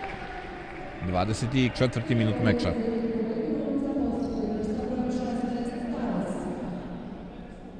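Men shout and cheer in a large echoing hall.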